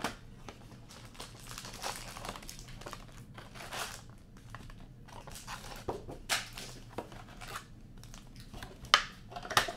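A cardboard box lid is opened and closed.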